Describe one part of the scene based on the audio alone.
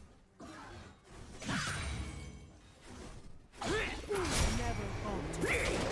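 Magic spells whoosh and crackle during a battle.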